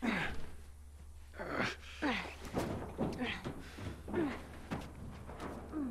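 A girl grunts with effort as she climbs.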